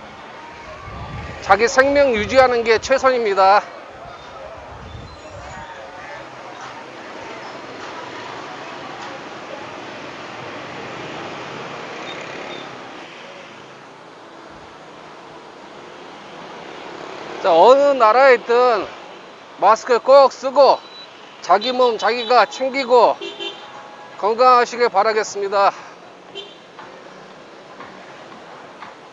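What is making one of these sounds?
Motorbike engines hum and pass by on a busy street.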